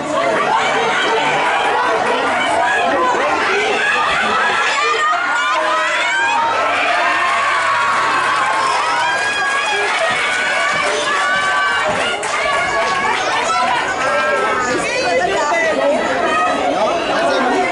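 A crowd of spectators shouts and cheers nearby outdoors.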